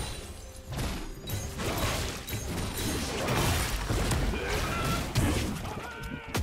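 Magic spells whoosh and crackle during a video game battle.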